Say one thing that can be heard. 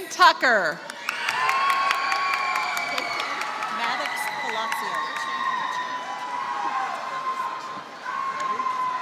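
A crowd claps in a large hall.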